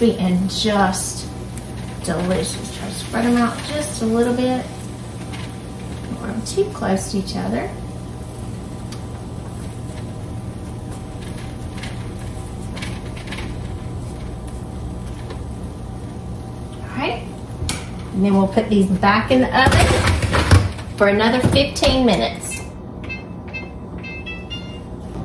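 An oven fan hums steadily.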